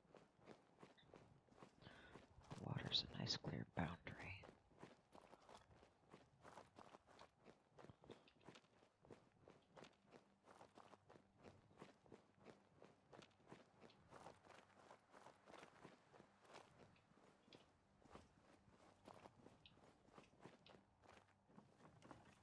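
Footsteps crunch steadily over gravel and rubble.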